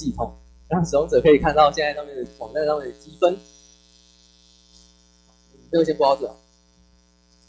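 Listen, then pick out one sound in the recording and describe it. A young man speaks into a microphone with animation, heard through a loudspeaker in a room.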